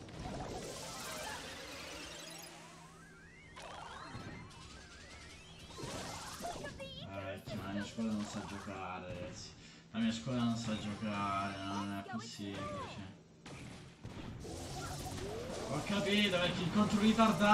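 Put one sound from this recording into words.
Arcade-style game effects of shots and blasts play.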